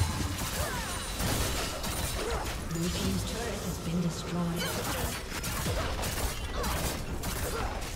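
Game spell effects and impacts crackle and burst in quick succession.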